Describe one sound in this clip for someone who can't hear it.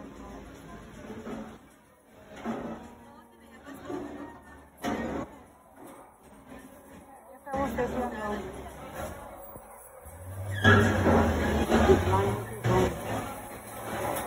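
People chatter in a busy, echoing room.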